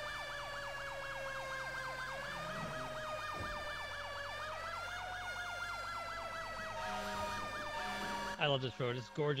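A siren wails in a fast, rising and falling yelp.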